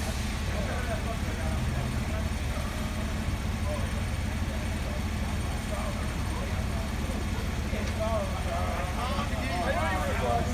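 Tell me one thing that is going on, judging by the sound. Men talk nearby outdoors, louder toward the end.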